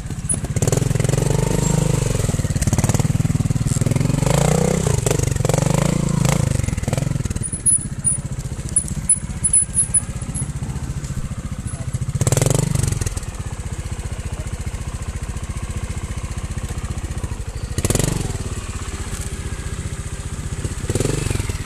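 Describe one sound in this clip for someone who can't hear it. A trials motorcycle engine revs in bursts as it climbs over rocks.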